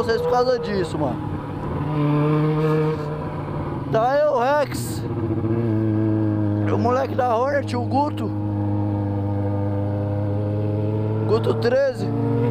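A motorcycle engine drones close by, changing pitch as it speeds up and slows.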